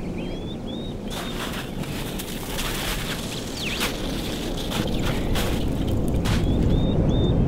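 Footsteps crunch through snow close by.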